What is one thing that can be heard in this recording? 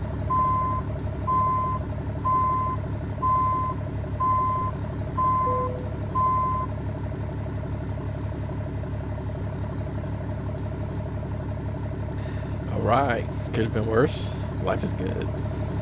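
A truck engine rumbles steadily at idle.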